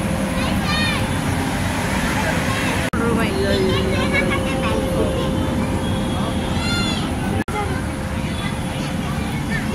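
Children shriek and shout excitedly amid a chattering crowd outdoors.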